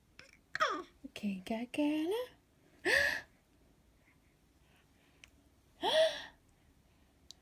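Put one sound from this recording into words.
A baby squeals and babbles.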